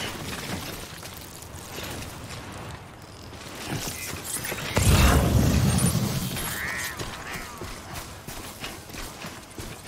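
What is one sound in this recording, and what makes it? Footsteps crunch on grass and rock.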